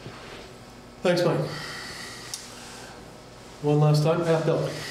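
An older man speaks in short phrases in a room with a slight echo.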